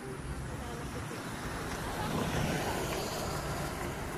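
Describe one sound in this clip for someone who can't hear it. A vehicle drives past on the road.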